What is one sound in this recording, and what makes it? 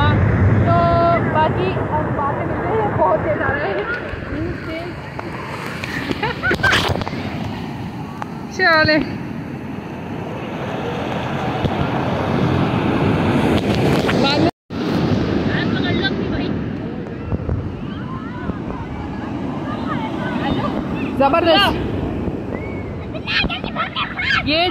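Waves crash and surge onto the shore.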